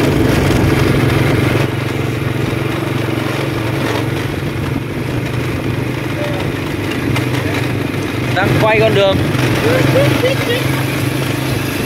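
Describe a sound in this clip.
A motorbike engine hums steadily at low speed.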